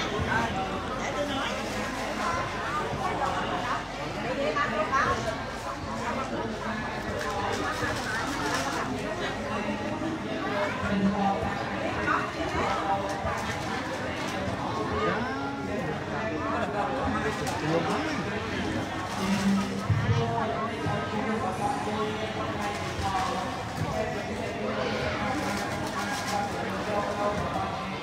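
Several men talk and murmur nearby in a crowd.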